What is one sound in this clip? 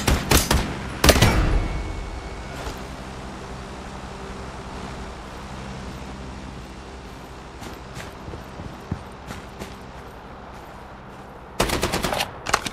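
Gunfire rattles in sharp, rapid bursts.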